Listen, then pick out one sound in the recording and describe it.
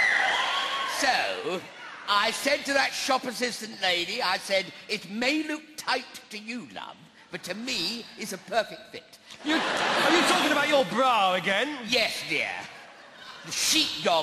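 A man speaks loudly and with animation through a stage microphone.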